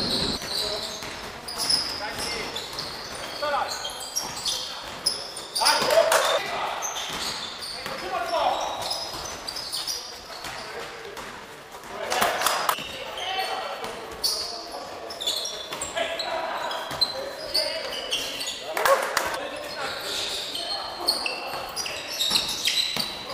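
A basketball bounces on a hard floor, echoing in a large hall.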